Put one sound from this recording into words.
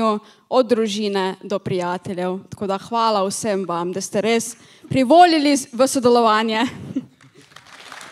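A young woman speaks into a microphone over loudspeakers in a large hall.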